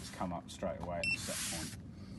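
An electronic control panel beeps briefly.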